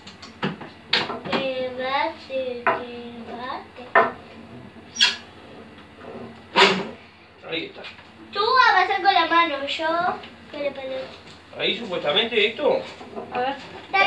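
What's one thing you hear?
A young girl talks and laughs close by.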